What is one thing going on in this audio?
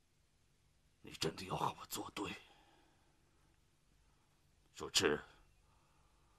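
An elderly man speaks in a low, stern voice close by.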